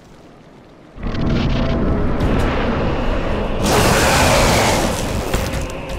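A large beast roars loudly and fiercely.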